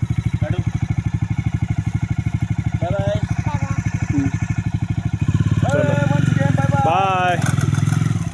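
A motorcycle engine idles with a steady, fast putter and revs up louder.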